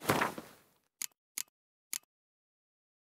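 Short clicks tick one after another.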